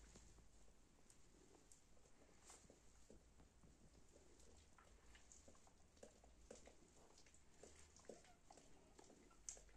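A mother dog licks her puppies with wet lapping sounds.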